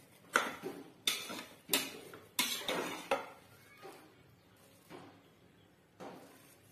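A spoon scrapes and clinks against a metal pot while stirring rice.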